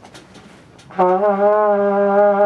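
A trumpet plays a steady held note.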